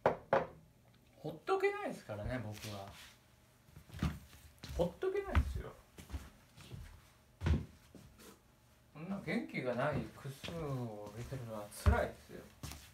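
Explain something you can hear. Knocks and thumps sound close by.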